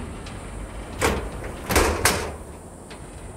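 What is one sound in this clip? A metal fence rattles and clanks.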